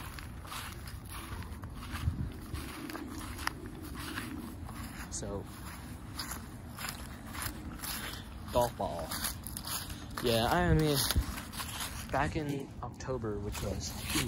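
Footsteps crunch on dry grass and fallen leaves.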